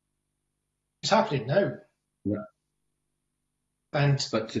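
A younger man speaks calmly over an online call.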